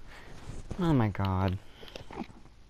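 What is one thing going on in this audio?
A creature lets out a loud warbling, rising cry up close.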